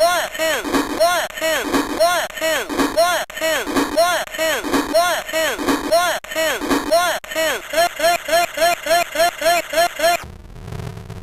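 An electronic toy plays warbling, bouncing electronic tones in a quick repeating pattern.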